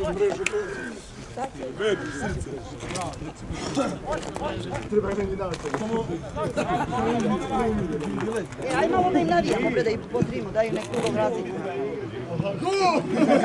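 Football players shout to each other in the distance.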